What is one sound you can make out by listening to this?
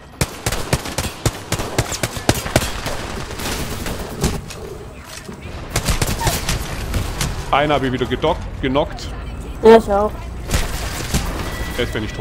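Gunfire from a video game rattles in rapid bursts.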